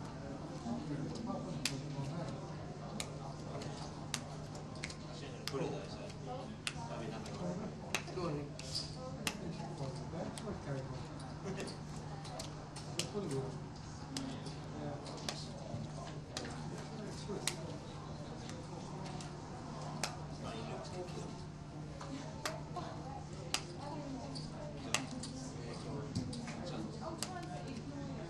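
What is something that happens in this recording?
Poker chips click together in a hand.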